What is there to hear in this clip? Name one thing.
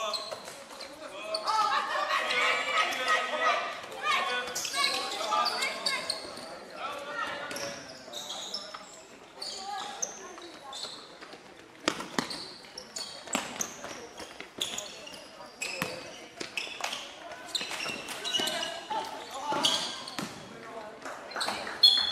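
Young players call out to each other across a large echoing hall.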